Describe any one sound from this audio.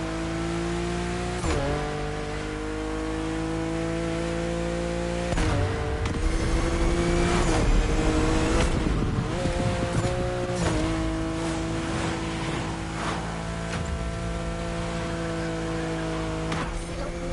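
A sports car engine roars at high revs, with brief drops at gear shifts.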